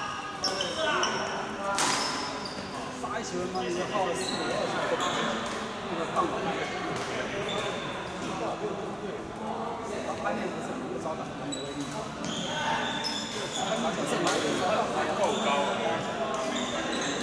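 Badminton rackets smack a shuttlecock back and forth.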